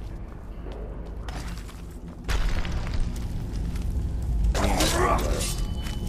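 Armoured footsteps thud on stone in an echoing passage.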